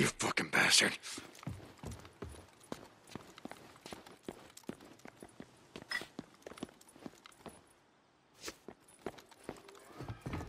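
Footsteps tread on a hard, debris-strewn floor.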